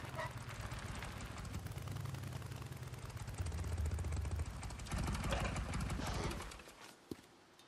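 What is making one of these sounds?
A motorcycle engine rumbles as the bike rides and rolls to a stop.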